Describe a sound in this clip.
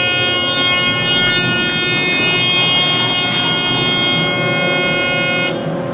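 An elevator door slides open.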